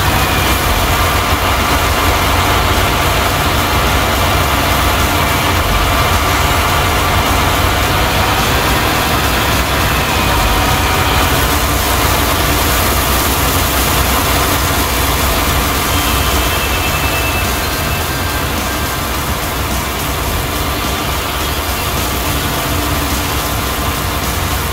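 A tractor engine rumbles low and steady.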